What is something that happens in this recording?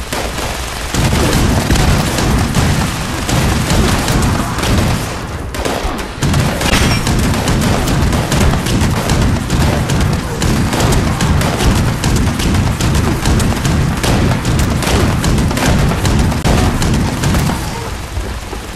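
A rapid-fire gun fires long, rattling bursts at close range.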